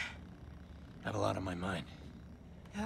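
A man speaks in a low, weary voice.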